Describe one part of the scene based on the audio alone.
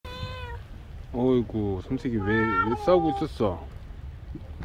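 A cat meows loudly several times close by.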